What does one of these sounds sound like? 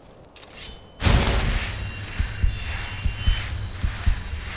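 A magic spell roars and crackles loudly.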